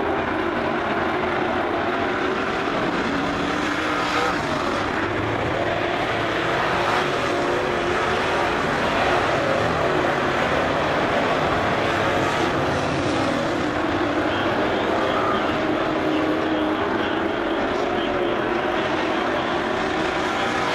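Engines rev up and down as cars accelerate out of the turns.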